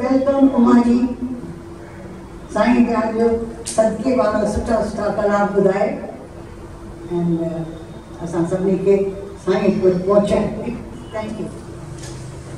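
A middle-aged woman speaks with feeling into a microphone, heard through a loudspeaker in an echoing hall.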